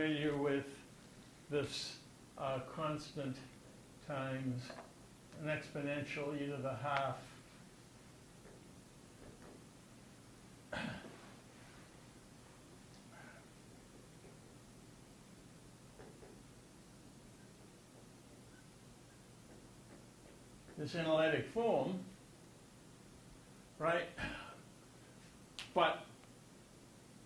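An elderly man speaks calmly and haltingly into a microphone, with long pauses.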